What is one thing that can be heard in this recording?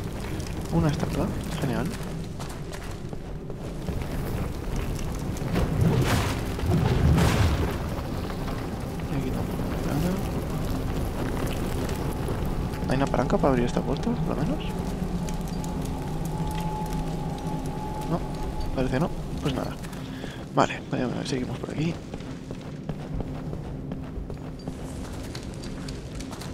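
Armoured footsteps scrape and clank on stone.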